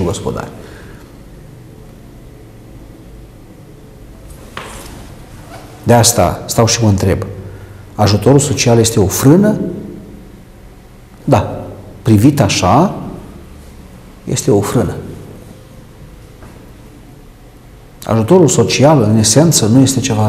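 A middle-aged man speaks calmly into a microphone, close up, in short bursts with pauses.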